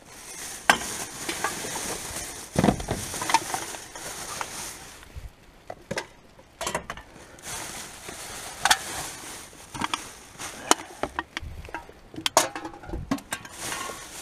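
Plastic bags rustle and crinkle as gloved hands dig through rubbish.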